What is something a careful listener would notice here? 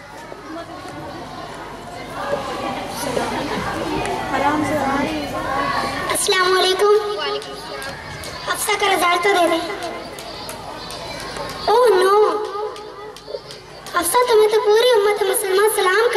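A young girl recites loudly through a microphone over loudspeakers.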